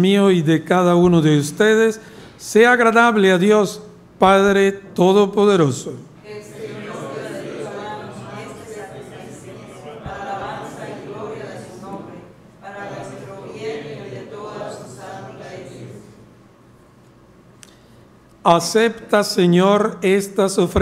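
A man chants in a sung voice through a microphone.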